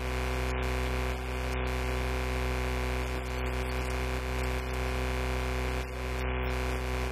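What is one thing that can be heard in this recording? A projector fan hums steadily.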